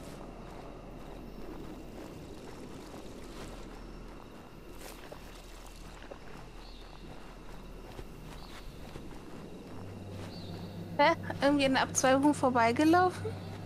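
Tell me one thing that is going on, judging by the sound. Footsteps crunch on loose gravel and rocks.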